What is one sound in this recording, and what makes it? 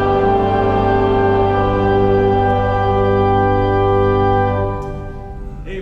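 An organ holds a loud sustained chord that ends abruptly.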